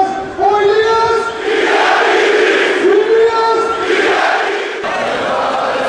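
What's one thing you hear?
A large stadium crowd chants loudly in unison.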